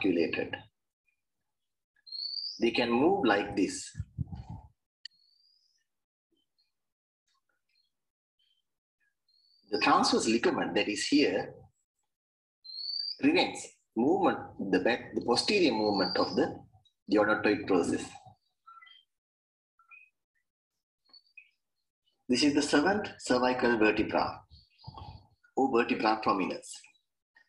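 A man speaks calmly in an online call, in short phrases with pauses.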